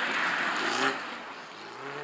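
Snow sprays and hisses under a passing car's tyres.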